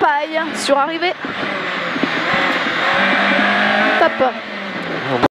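A rally car engine roars loudly from inside the car, revving up and dropping sharply with each gear change.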